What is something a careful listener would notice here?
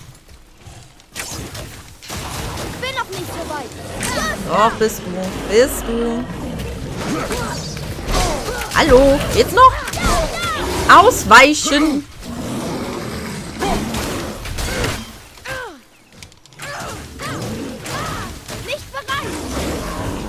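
An axe strikes and slashes with heavy thuds.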